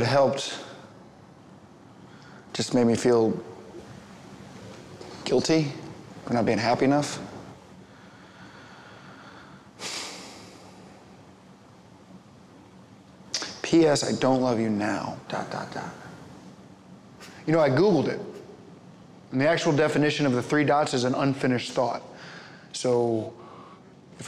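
A young man speaks calmly and close by, in short phrases.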